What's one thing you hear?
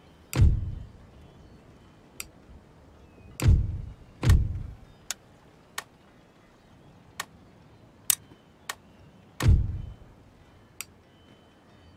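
Sharp clicks sound as menus open and close.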